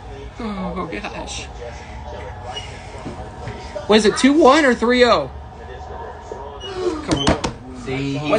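A young man talks close by with animation, his voice rising into a loud sing-song call.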